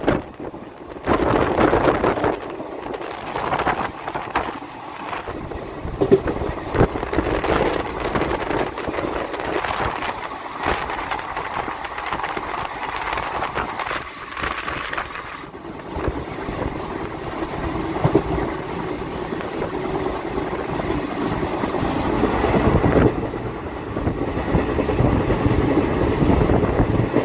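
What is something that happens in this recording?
A train rumbles and rattles steadily along the tracks.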